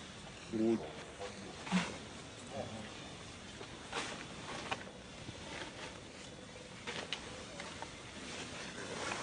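Monkeys rustle through grass and leaves on the ground.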